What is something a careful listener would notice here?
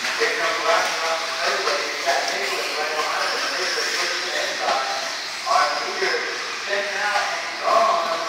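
Small electric model cars whine as they speed around and rev up and down.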